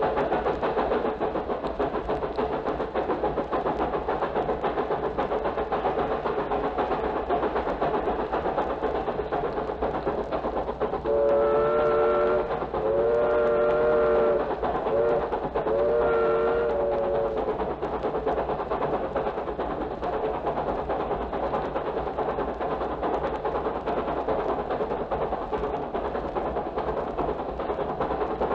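A vinyl record crackles and hisses as it spins.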